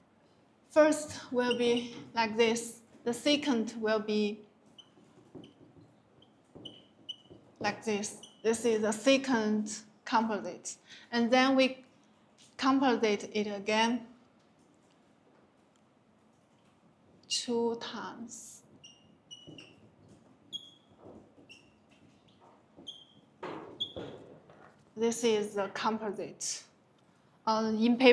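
A young woman speaks calmly and clearly, explaining at length.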